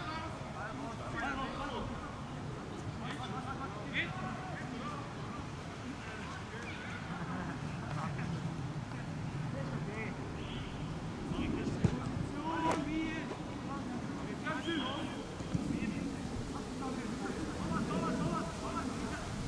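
Men shout and call to each other outdoors across a field.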